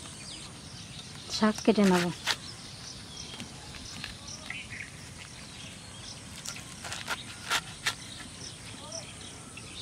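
A knife slices through a bundle of leaves.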